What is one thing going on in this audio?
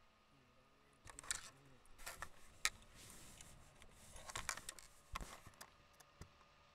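Fabric rustles and knocks against a microphone.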